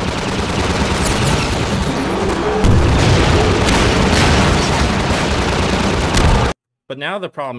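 A rocket blasts off with a loud roar.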